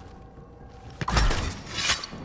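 A blaster rifle fires shots.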